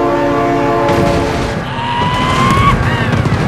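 A vehicle crashes with a crunch of metal.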